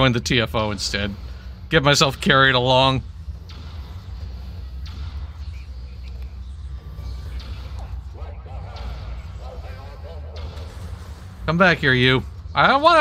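Magic spells ring out in loud, warbling bursts.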